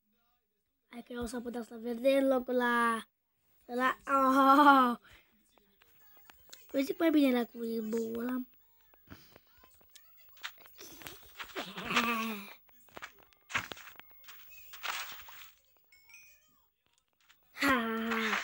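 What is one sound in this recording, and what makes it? A young boy talks with animation into a phone microphone, close by.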